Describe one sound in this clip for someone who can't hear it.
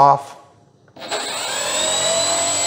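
A small electric motor whines as it spins up.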